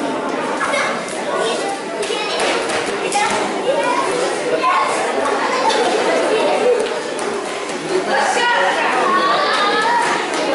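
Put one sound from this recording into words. A crowd chatters indoors in a large echoing hall.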